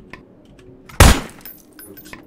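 A gun fires a single loud shot.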